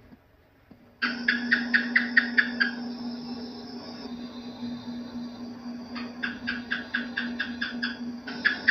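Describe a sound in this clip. A gecko chirps in quick bursts of sharp clicks.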